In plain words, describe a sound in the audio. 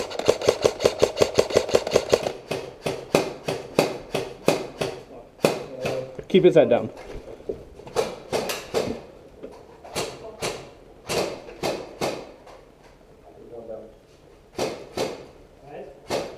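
Rapid shots from a gun crack close by, in quick bursts.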